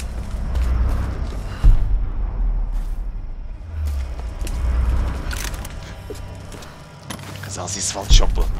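Footsteps crunch on leaves and twigs.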